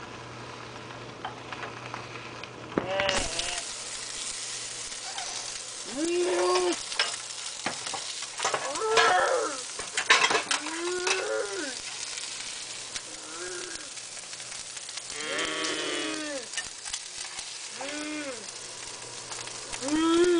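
A metal spatula scrapes and clatters against a frying pan.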